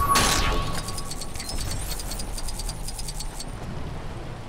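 Coins tinkle rapidly as they are collected.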